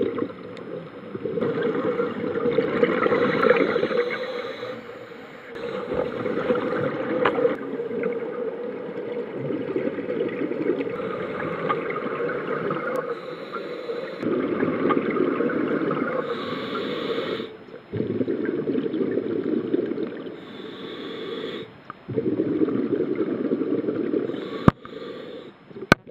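Scuba air bubbles rumble and gurgle loudly underwater in repeated bursts.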